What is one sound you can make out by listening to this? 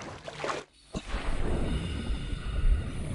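Water rumbles in a low, muffled way underwater.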